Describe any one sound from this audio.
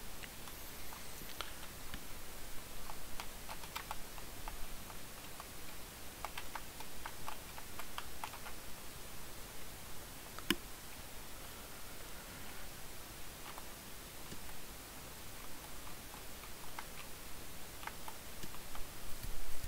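Short video game sound effects chime and blip now and then.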